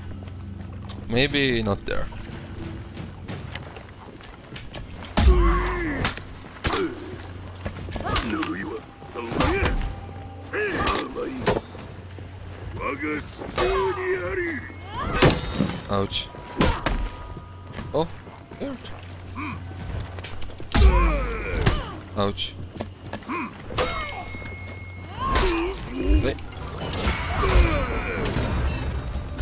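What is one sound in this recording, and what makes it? Warriors grunt and shout as they strike.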